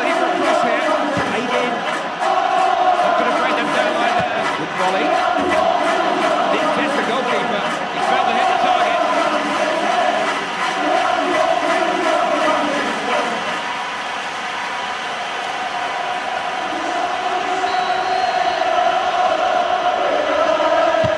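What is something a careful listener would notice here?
A large stadium crowd roars and chants steadily.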